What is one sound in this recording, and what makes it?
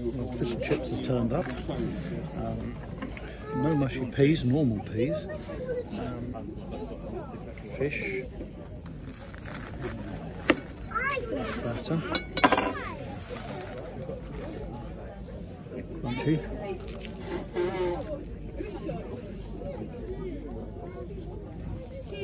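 An elderly man talks calmly and close by.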